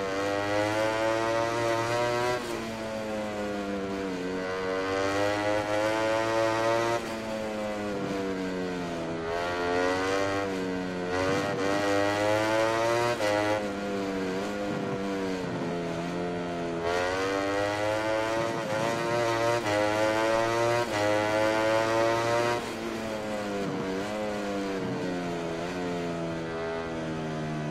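A racing motorbike engine revs high, rising and falling as it shifts gears through the corners.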